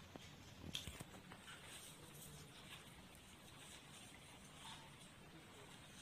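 A glue stick scrapes across paper.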